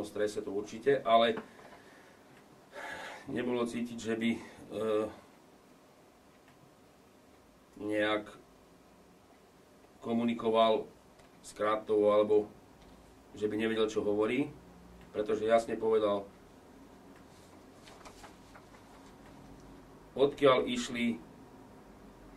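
A middle-aged man reads out calmly into a close microphone, in short phrases with pauses.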